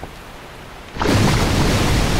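A magical blast erupts with a loud rushing whoosh.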